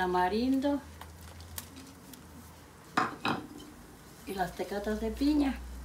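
Water splashes as a bowl scoops it from a pot.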